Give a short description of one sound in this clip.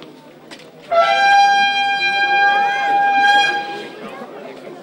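A bugle plays a long, steady call.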